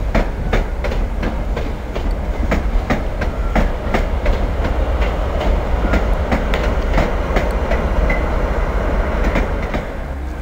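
A train rumbles steadily past.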